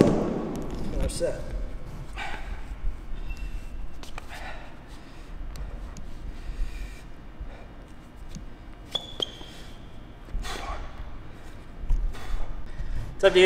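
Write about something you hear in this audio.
A man exhales hard in rhythmic bursts while straining.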